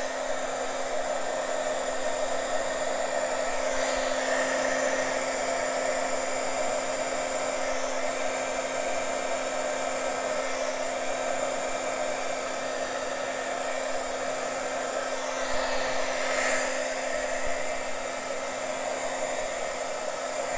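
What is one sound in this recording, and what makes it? An embossing heat gun whirs, blowing hot air.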